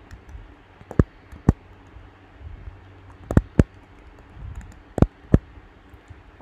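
Keyboard keys click as someone types.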